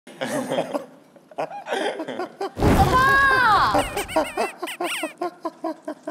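A young man laughs hard close by.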